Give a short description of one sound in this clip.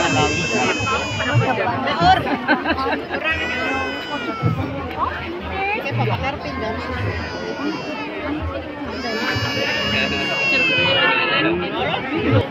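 Children shout and cheer in high voices nearby.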